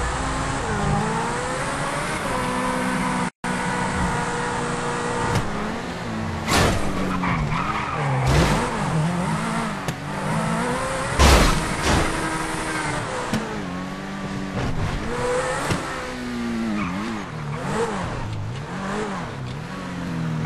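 Car tyres hum on the road.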